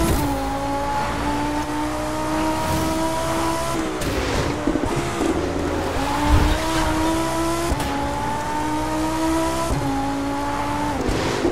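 A sports car engine roars, rising in pitch and dropping sharply with each gear change.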